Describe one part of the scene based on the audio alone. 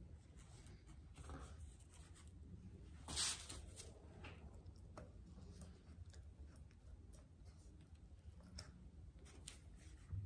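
Paper rustles and crinkles as it is smoothed by hand.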